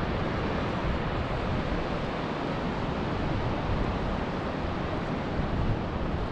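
Waves break on a beach in the distance.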